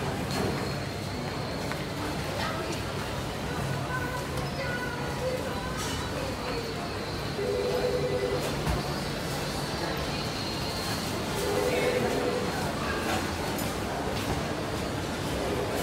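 A crowd murmurs and chatters in a large, echoing indoor hall.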